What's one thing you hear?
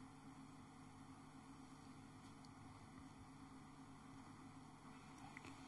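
A keyboard holds a soft, steady chord.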